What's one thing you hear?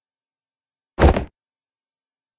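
A short, sharp alert sound from a video game plays once.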